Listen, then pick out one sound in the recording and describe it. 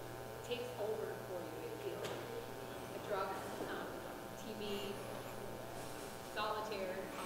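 A middle-aged man speaks calmly to a group in a large echoing room.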